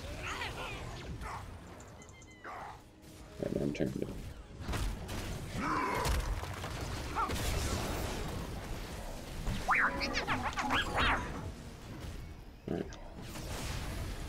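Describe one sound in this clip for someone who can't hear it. Game weapons fire and magic effects crackle in quick bursts during a fight.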